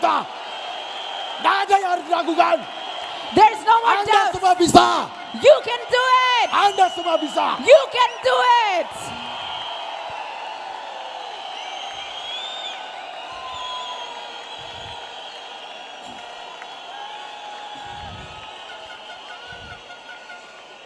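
A large crowd cheers and murmurs in a big echoing hall.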